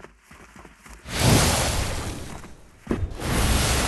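Water gushes and splashes loudly.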